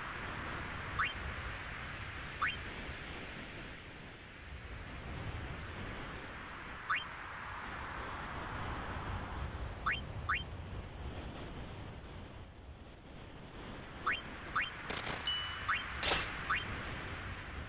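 Short rising electronic chimes blip now and then.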